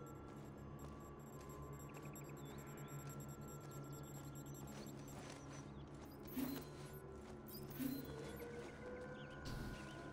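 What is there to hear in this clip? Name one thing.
Footsteps run quickly through grass and leaves.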